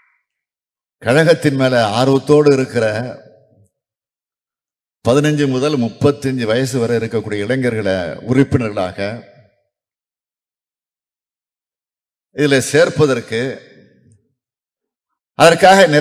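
A man gives a speech into a microphone with pauses, heard through loudspeakers in a large hall.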